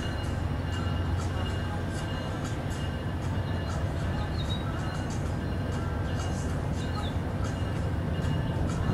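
A diesel locomotive rumbles low in the distance as it slowly approaches.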